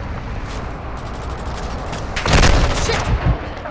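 Gunshots crack in rapid bursts close by.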